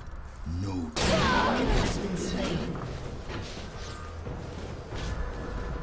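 Magic blasts and weapon hits clash in a fast game battle.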